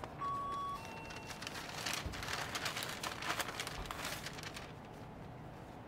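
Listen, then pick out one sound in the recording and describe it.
A paper bag rustles and crinkles.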